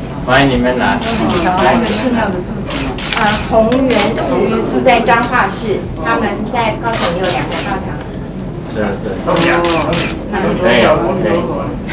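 An elderly woman speaks warmly and clearly nearby.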